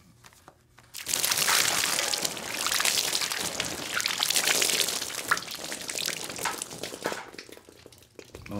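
Liquid pours and splashes heavily onto a man.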